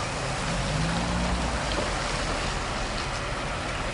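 A car drives slowly past close by.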